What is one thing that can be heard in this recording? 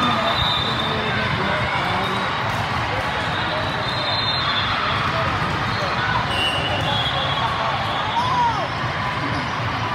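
A large crowd chatters and calls out, echoing through a big hall.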